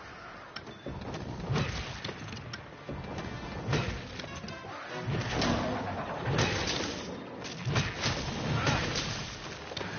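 Heavy thuds and crashes boom during a monster fight.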